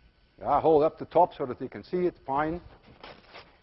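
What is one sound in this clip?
A man speaks clearly through a microphone in a large room.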